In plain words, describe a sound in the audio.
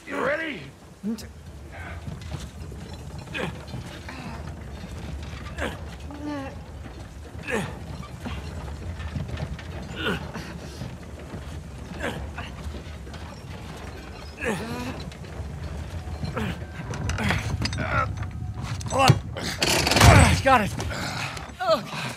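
A heavy wooden cart rolls slowly over stones, its wheels rumbling and creaking.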